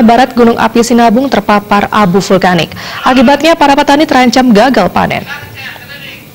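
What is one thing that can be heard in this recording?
A young woman reads out the news calmly into a microphone.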